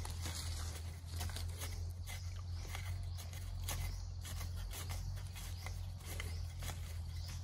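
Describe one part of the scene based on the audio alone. A metal bar thuds and scrapes repeatedly into the soil.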